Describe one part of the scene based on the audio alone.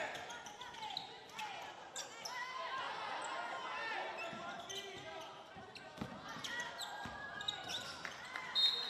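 Basketball shoes squeak sharply on a hardwood court.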